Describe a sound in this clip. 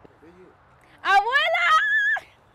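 A young woman laughs loudly and shrilly close to a microphone.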